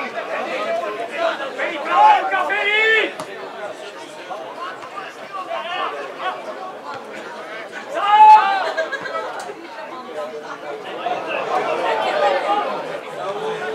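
Men close by shout and call out loudly outdoors.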